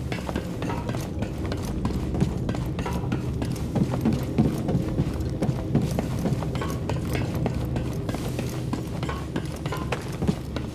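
Footsteps thud quickly on a metal grating.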